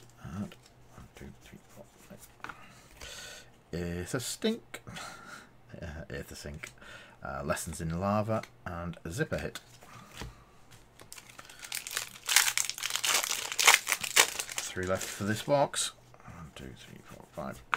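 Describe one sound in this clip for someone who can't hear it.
Playing cards slide and tap against each other.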